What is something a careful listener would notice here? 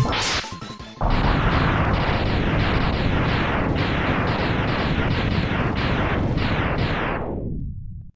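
A long series of rumbling explosions booms and crackles, then fades out.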